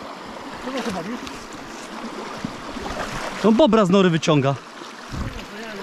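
Feet splash while wading through water.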